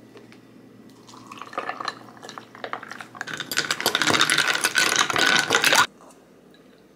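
Juice pours into a glass over ice.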